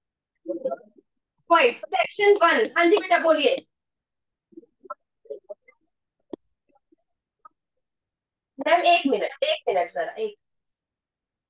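An elderly woman speaks calmly over an online call, explaining.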